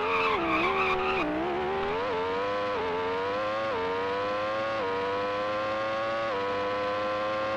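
A racing car engine whines, rising in pitch and dropping briefly at each gear change.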